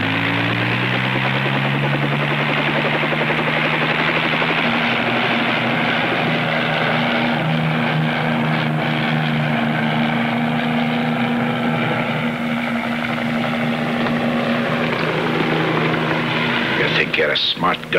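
A helicopter engine drones and its rotor whirs overhead.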